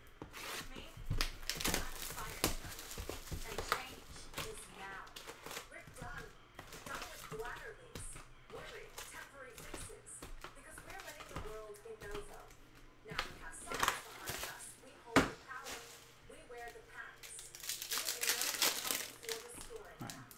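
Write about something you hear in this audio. Plastic wrappers and card packs crinkle and rustle under hands.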